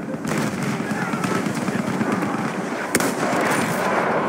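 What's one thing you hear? Explosions rumble nearby.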